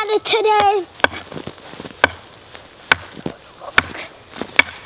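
A wooden stick strikes a log in sharp, regular knocks.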